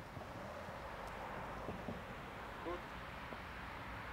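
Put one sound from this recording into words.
Boots march on paving stones.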